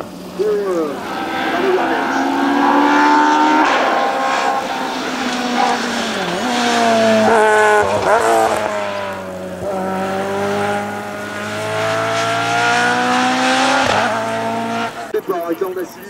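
A racing car engine screams at high revs, dropping and rising in pitch as gears change while the car speeds past.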